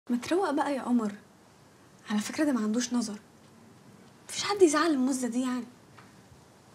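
A young girl speaks softly and earnestly nearby.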